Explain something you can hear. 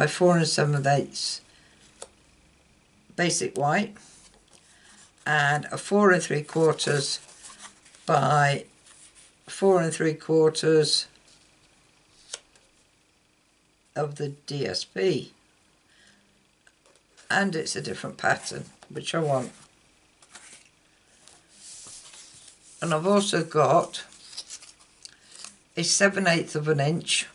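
Sheets of paper rustle and slide against each other.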